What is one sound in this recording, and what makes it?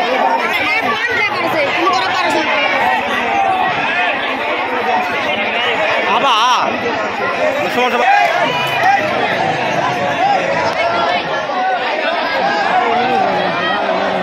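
A large crowd of young people chatters and shouts outdoors.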